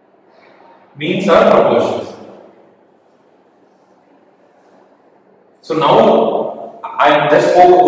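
A man speaks calmly, as if explaining to a class.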